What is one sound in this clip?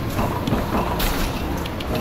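Karts bump into each other with a clatter.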